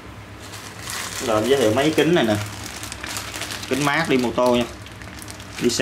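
A plastic bag crinkles and rustles in a hand.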